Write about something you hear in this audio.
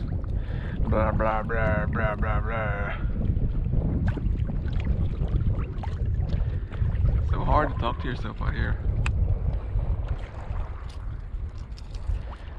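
Water laps gently against a small boat's hull.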